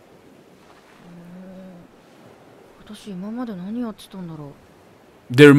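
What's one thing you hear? A young woman speaks in a puzzled, questioning voice close by.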